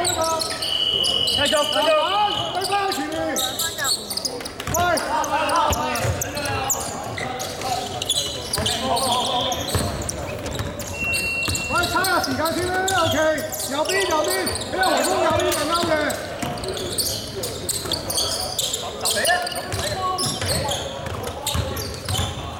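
Basketball players shout and call out to each other in a large echoing hall.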